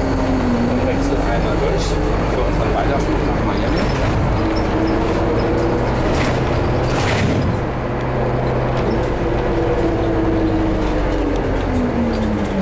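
A bus engine hums with a whine that rises and falls.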